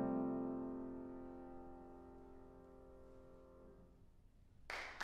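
A piano's final chord rings out and slowly fades in an echoing hall.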